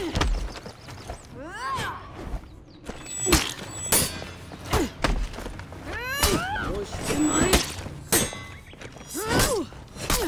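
Swords clash and strike in quick, sharp blows.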